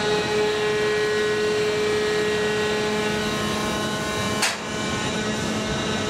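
A crane's motor hums steadily.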